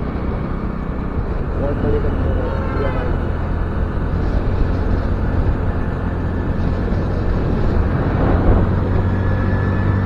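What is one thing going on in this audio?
Wind rushes loudly past a rider outdoors.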